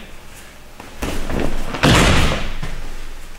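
A body thuds heavily onto a mat.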